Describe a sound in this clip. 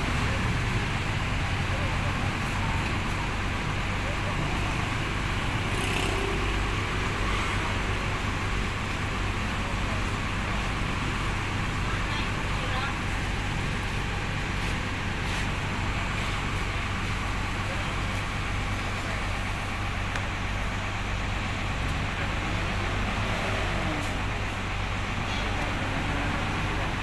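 A large bus engine idles with a deep, steady rumble close by.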